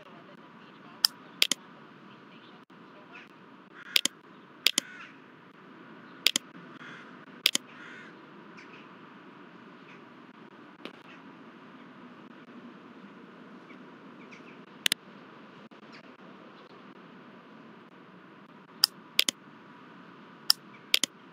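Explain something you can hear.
Game menu buttons click sharply, now and then.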